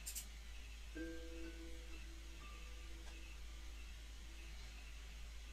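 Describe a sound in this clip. Soft, slow music plays quietly.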